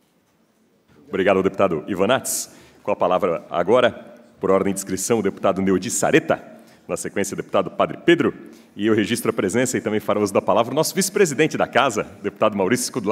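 A man speaks with good humour through a microphone.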